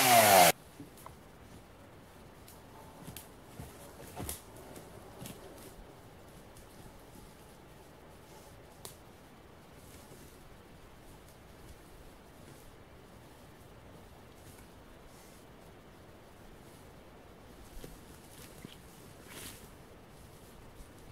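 Branches and dry leaves rustle and crackle underfoot.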